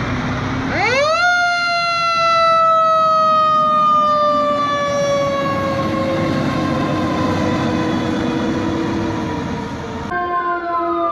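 A fire truck's engine rumbles as it pulls away.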